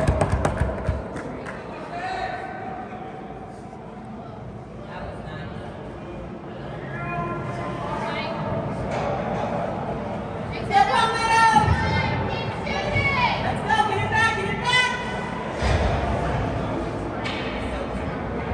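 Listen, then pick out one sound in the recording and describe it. Ice skates scrape and hiss across the ice in a large echoing rink.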